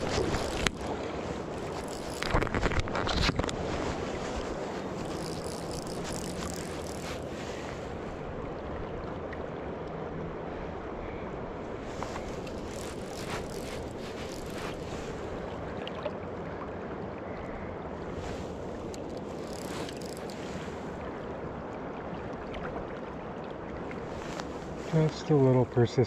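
A river rushes and gurgles steadily close by.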